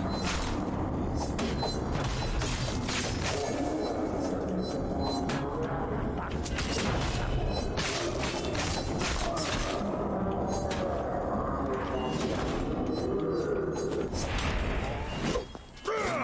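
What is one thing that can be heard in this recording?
Swords clash and clang in a fierce fight.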